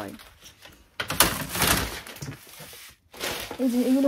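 Plastic packaging rustles and crinkles as it is handled.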